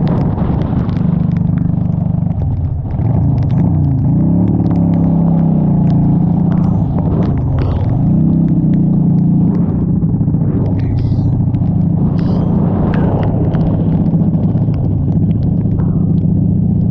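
A motorcycle engine rumbles steadily, rising and falling in pitch.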